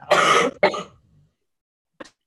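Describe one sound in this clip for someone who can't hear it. A young woman coughs over an online call.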